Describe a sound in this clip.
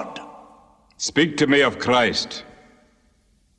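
An older man with a deep voice speaks firmly close by.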